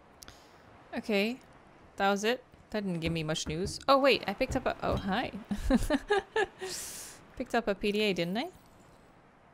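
A young woman talks casually into a nearby microphone.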